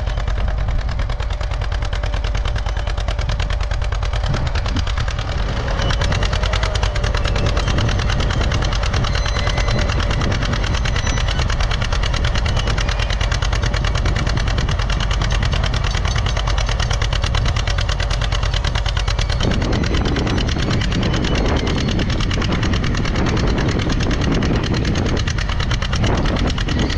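A plough scrapes and tears through clods of soil.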